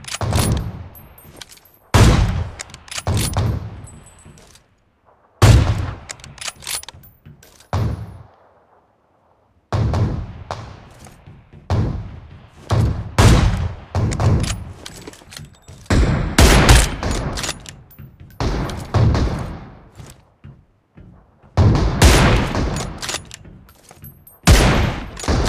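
Rifle shots crack loudly, one at a time, each trailing off in an echo.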